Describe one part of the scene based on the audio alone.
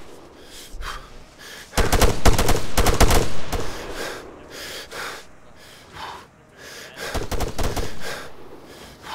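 Gunshots crack in rapid bursts nearby.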